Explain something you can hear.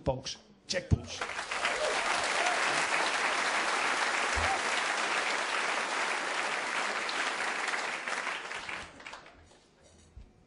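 A large audience applauds and cheers in an echoing hall.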